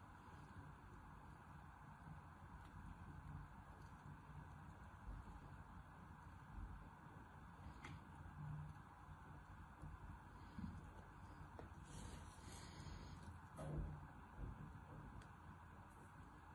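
Fingers squeeze and crumble soft sand with quiet crunching.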